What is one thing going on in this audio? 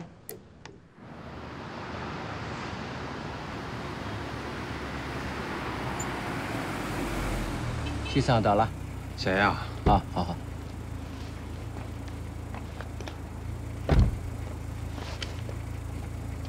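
A car engine hums as the car drives up and stops.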